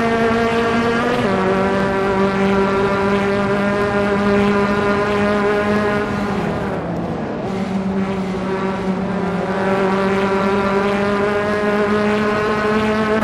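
A racing car engine drones loudly, dropping in pitch and then climbing again.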